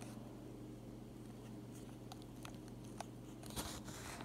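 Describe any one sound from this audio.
Fingers press the buttons of a calculator with soft clicks.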